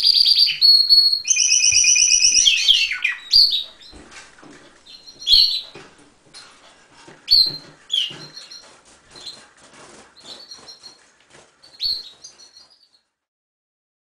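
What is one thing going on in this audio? A canary sings in rolling trills and whistles, then in scattered chirps.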